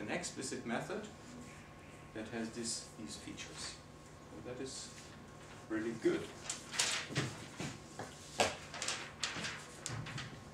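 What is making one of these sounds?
Paper rustles in a man's hands.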